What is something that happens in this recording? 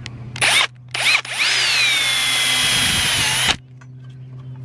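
A power drill whirs briefly.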